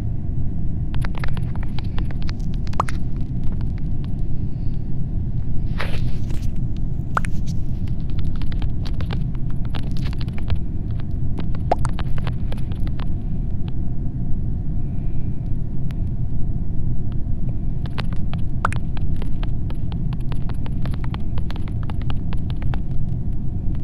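Keyboard keys click quickly as a message is typed.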